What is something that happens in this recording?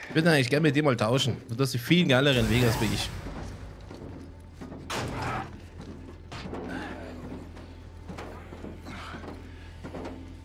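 Bodies scrape and thump inside a narrow metal duct.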